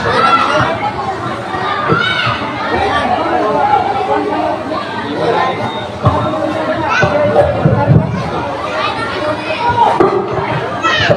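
A woman sings loudly through a loudspeaker.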